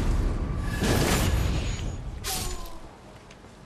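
A sword slashes with loud swooshing blows.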